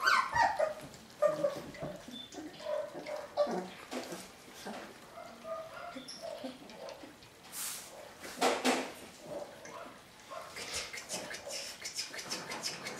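Puppies lap milk from a bowl.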